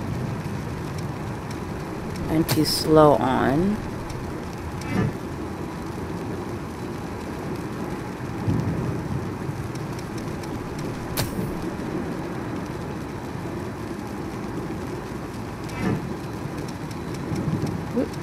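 A fire crackles and burns steadily.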